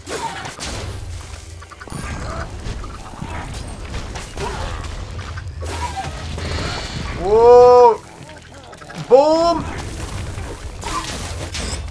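Explosions burst with deep booms.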